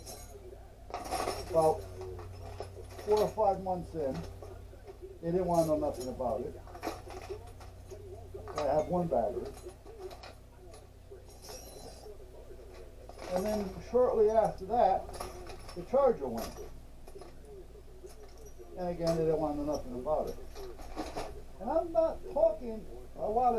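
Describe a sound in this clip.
An older man talks calmly close by, in bursts with pauses.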